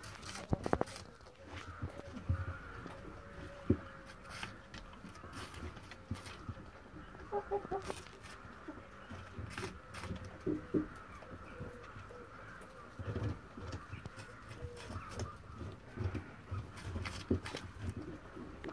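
A rabbit crunches on a piece of vegetable close by.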